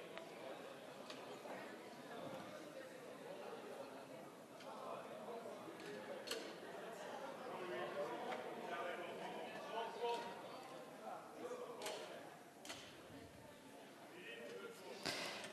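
A crowd murmurs quietly in a large hall.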